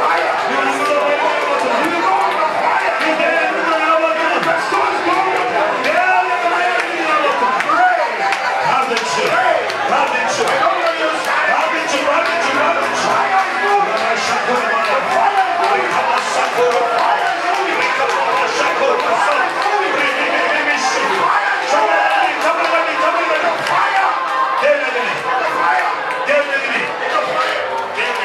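A man prays aloud with fervour, close by.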